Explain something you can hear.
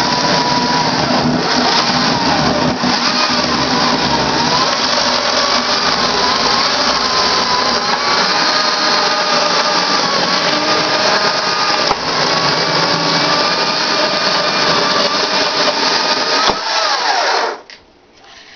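A chainsaw engine roars loudly and steadily, close by.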